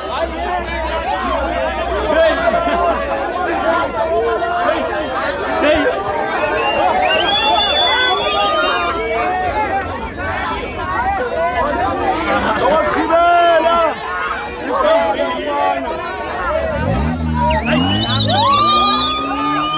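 A crowd of young people talks and shouts excitedly nearby, outdoors.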